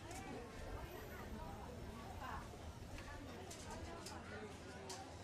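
A crowd of people chatters in the background.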